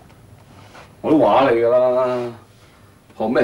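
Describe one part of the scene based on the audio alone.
A man speaks loudly and tensely, close by.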